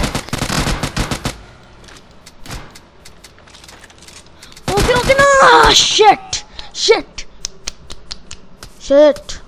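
Gunshots fire in quick, sharp bursts.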